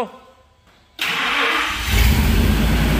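A truck engine cranks and roars to life.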